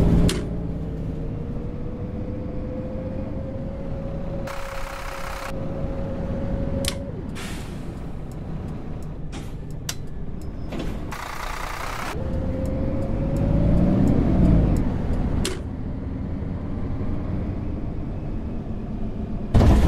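A bus engine hums and whines steadily as the bus drives along.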